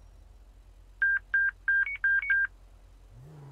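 A radar unit beeps quickly several times.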